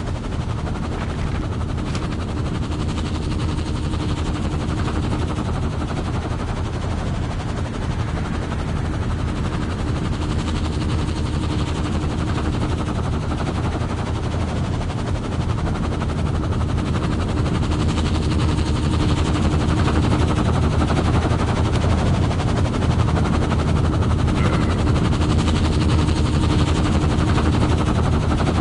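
A helicopter's rotor thumps loudly and steadily nearby.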